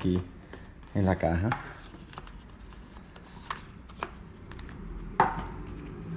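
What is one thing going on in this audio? A cardboard box lid is lifted open.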